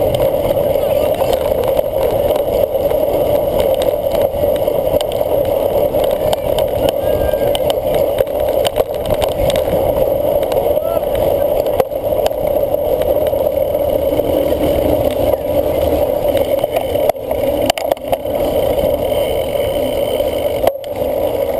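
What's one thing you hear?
A cyclocross bike rattles as it rides over rough ground.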